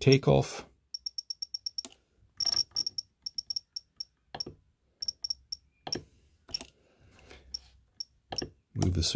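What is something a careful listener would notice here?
A radio controller beeps briefly with each button press.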